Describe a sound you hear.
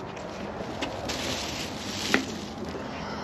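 A parcel thumps down against a door.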